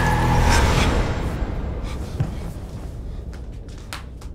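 Bedding rustles.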